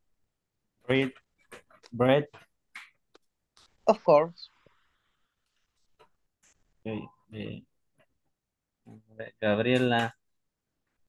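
A man speaks calmly and clearly over an online call, in short phrases with pauses.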